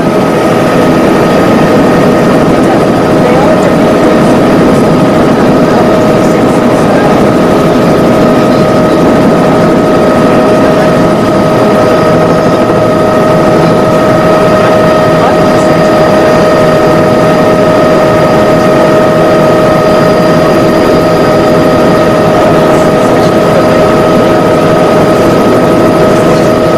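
A light aircraft's engine drones loudly and steadily close by.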